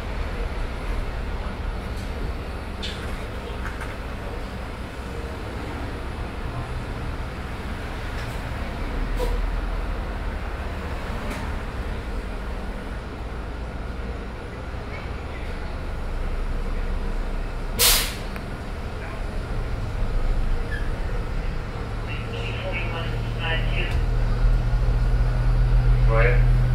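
A vehicle engine hums and rumbles steadily as it idles and rolls slowly.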